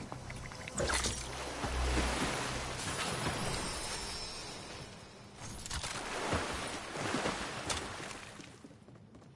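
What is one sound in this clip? Water swishes and churns steadily with swimming strokes.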